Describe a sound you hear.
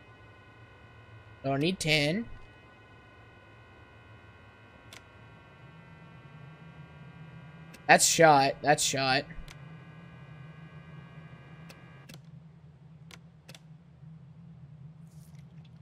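Fuses click in and out of a panel.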